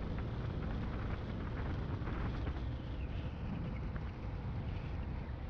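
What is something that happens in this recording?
Wind rushes loudly past while moving along a road.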